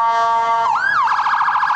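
A vehicle air horn blares briefly.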